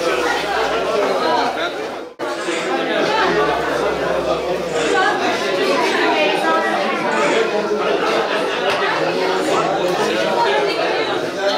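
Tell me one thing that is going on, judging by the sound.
A crowd of men and women chatters loudly all around.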